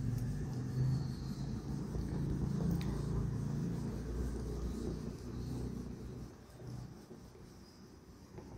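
A duster rubs and scrapes across a whiteboard.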